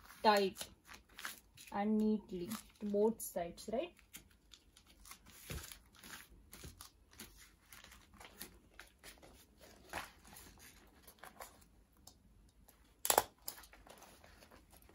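A plastic sleeve crinkles and rustles under hands.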